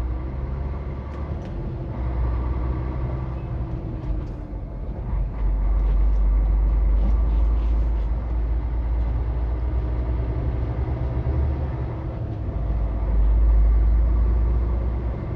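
Wind buffets loudly against the vehicle.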